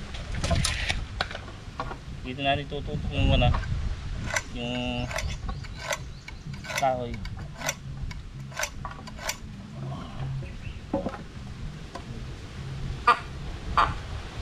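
A hand saw cuts through wood.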